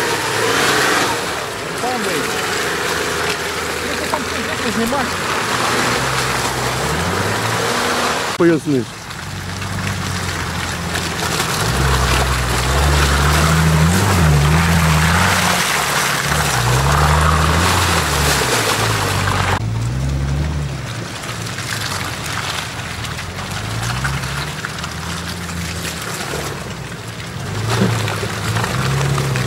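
An off-road vehicle's engine revs hard, rising and falling as it churns through mud.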